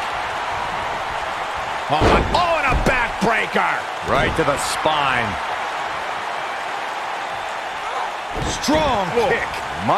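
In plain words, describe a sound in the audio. A body slams down hard onto a wrestling mat.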